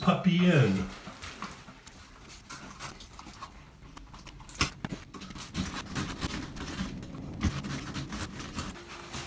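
Tools scrape and knock against a wall.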